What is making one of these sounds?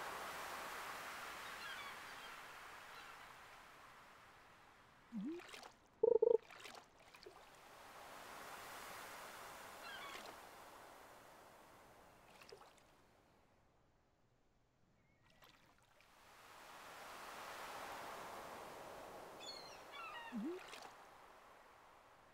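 Waves wash in slow, gentle swells.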